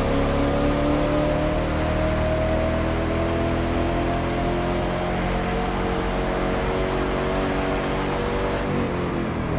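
Tyres rush loudly over the road.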